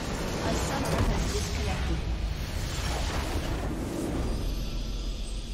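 A large crystal structure shatters in a booming explosion.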